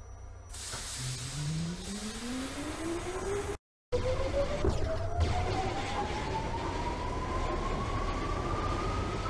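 A subway train's electric motors whine, rising in pitch as it pulls away.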